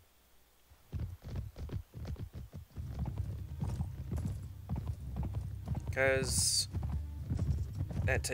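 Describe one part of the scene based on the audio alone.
Many horses gallop over open ground.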